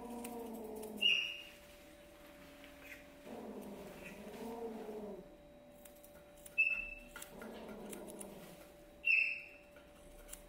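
Scissors snip sharply, close by.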